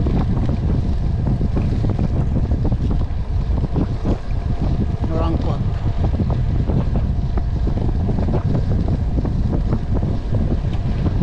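Wind buffets the microphone of a moving road bicycle.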